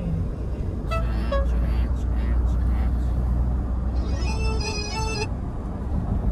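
A woman talks cheerfully close by inside the car.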